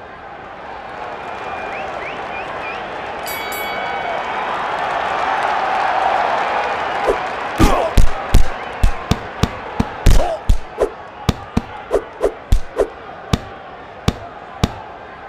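A large crowd murmurs and cheers in the background.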